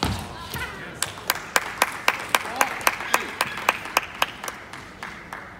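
A table tennis ball clicks against a table and paddles in a quick, steady rhythm in a large echoing hall.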